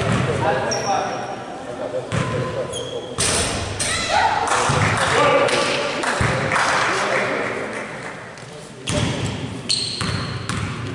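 Sneakers squeak sharply on an echoing gym floor.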